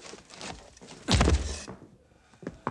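A body thuds hard against a wooden bunk.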